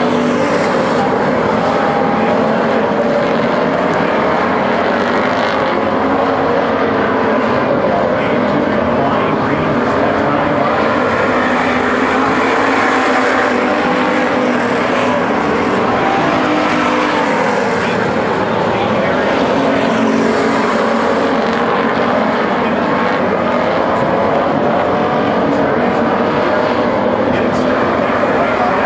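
Race car engines roar loudly and steadily.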